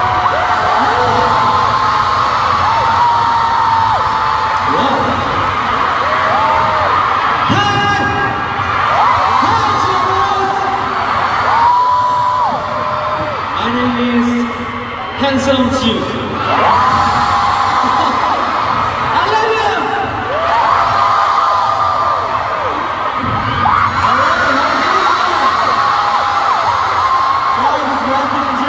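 A large crowd screams and cheers throughout a big echoing arena.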